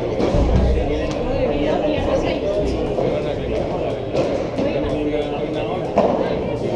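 Children and adults chatter in a large echoing hall.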